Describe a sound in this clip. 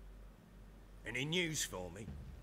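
An elderly man speaks in a deep, calm voice.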